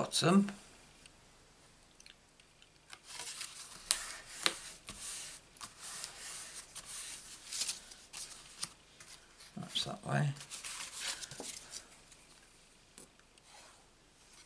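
Paper cards slide and rustle on a table.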